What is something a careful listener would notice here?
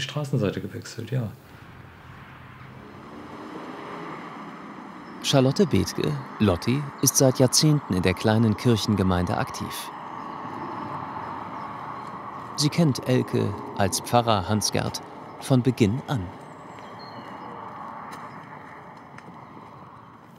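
Footsteps walk slowly on pavement.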